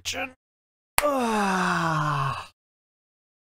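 A young man cheers loudly.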